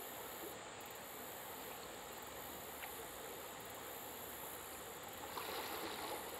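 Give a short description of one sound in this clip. A river flows gently outdoors.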